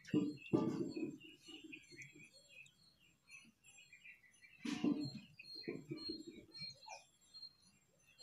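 Water splashes and sloshes as a bucket is dipped into it.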